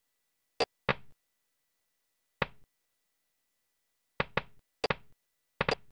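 Short electronic blips sound in quick, irregular bursts as balls are launched.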